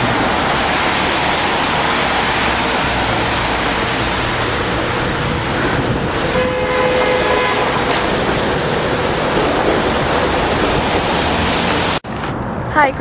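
Steady street noise rumbles outdoors.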